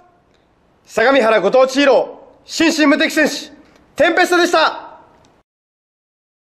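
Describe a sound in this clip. A man shouts energetic phrases close to a microphone.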